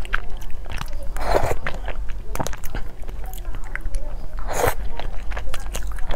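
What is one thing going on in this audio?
A spoon clinks against a plastic cup.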